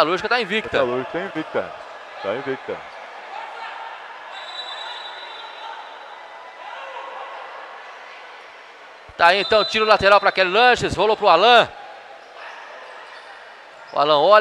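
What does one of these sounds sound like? Sports shoes squeak on a hard court in an echoing hall.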